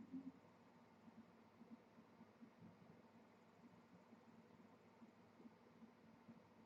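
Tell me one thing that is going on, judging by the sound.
Water bubbles and gurgles softly in a fish tank.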